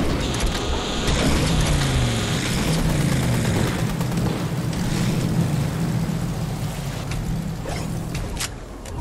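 A truck engine roars steadily.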